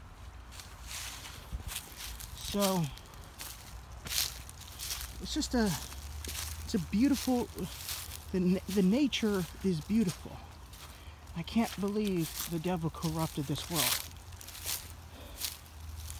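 Footsteps crunch on dry leaves and grass.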